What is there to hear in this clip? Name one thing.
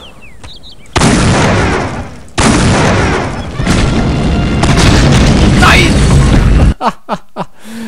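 A heavy weapon fires with a long, loud roaring blast.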